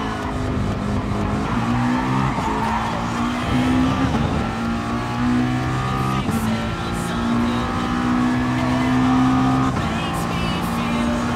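A racing car engine roars and shifts up through the gears as it accelerates.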